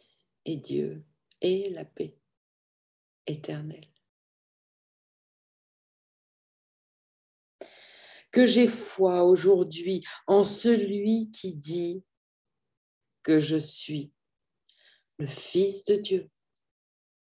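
A middle-aged woman speaks calmly into a microphone, heard over an online call.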